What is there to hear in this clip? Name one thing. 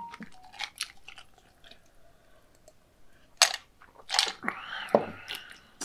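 A man gulps a drink from a glass.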